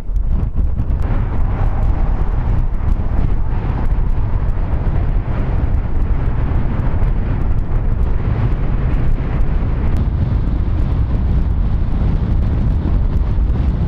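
Wind-driven snow hisses across a road.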